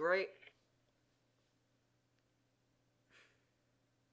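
Playing cards are dealt with a soft swish.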